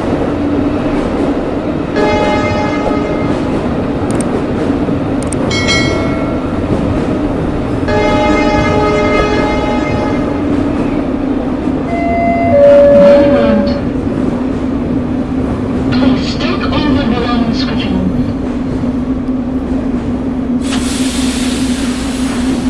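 A train's electric motor hums steadily as it rolls along a track.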